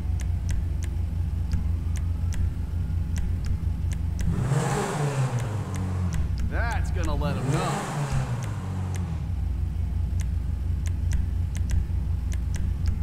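A sports car engine idles with a low, steady rumble.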